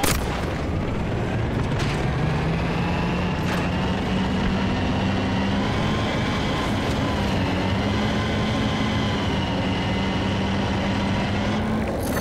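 A tank engine rumbles and whines steadily as the tank drives.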